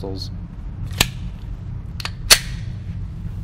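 Metal parts of a pistol click sharply as it is loaded.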